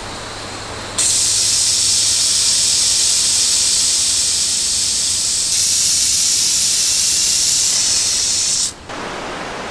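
Steam hisses loudly from a pressure valve.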